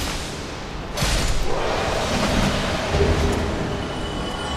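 A body collapses and dissolves with a rushing whoosh.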